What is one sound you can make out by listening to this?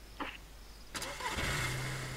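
A car engine starts up and idles.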